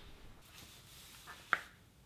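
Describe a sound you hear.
Plastic bottles crinkle as a hand grabs them.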